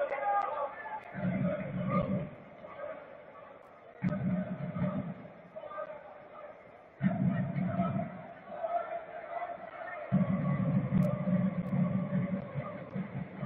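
A large crowd chants in an open stadium.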